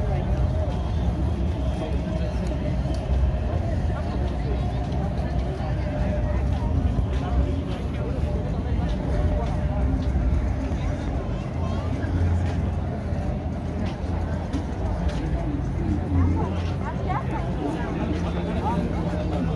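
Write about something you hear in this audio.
Footsteps shuffle on pavement nearby.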